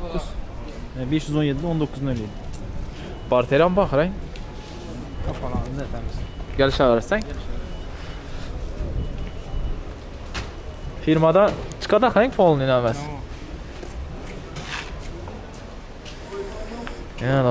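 A man talks close by, with animation.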